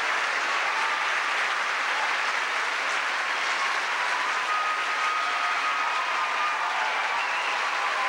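Several men talk on a stage, heard from far off in a large hall.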